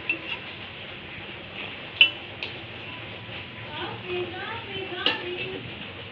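A spatula scrapes and knocks against a metal wok.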